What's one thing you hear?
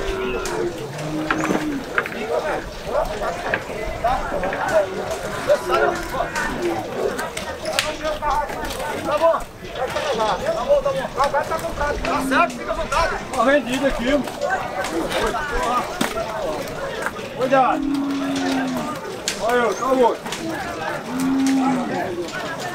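Cattle low nearby.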